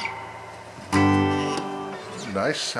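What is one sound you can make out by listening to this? An electric guitar strums a chord.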